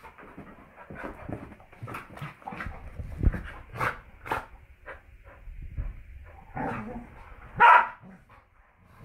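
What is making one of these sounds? A dog snorts and huffs while playing.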